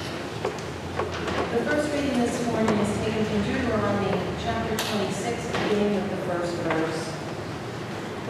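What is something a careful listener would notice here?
An elderly woman speaks into a microphone in a large echoing room.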